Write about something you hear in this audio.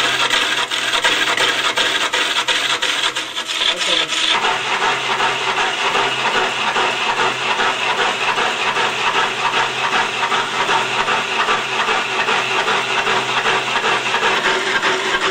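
A large lathe hums steadily as it spins.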